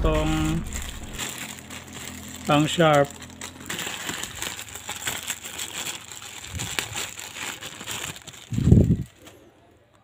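Plastic wrapping crinkles and rustles in hands.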